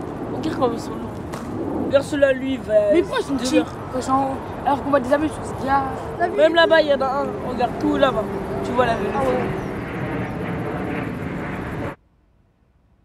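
A child speaks with wonder close by.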